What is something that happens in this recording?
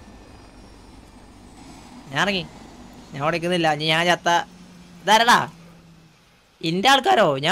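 A helicopter's rotor drones low in the background.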